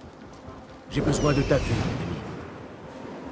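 A strong rush of air whooshes as a large bird takes flight.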